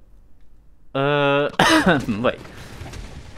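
A game gun fires loud blasts.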